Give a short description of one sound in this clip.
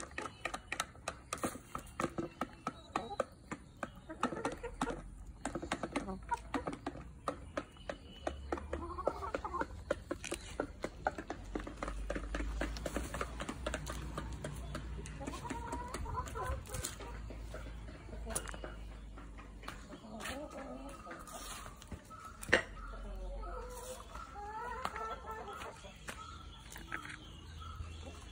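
Hens cluck softly and continuously.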